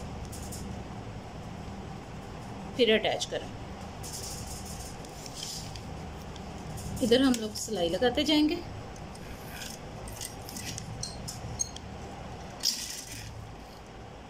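Paper rustles and crinkles as it is handled.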